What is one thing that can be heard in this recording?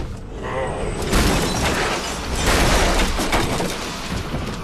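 Furniture crashes and papers scatter.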